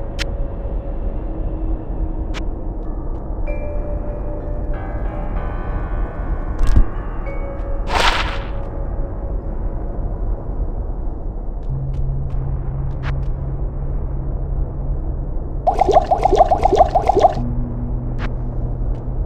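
Short game clicks sound now and then.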